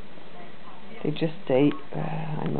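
A puppy yelps loudly.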